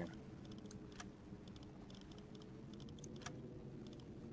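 Soft interface clicks sound.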